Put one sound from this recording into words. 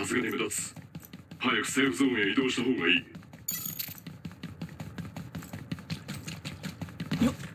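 Quick footsteps run over hard stone.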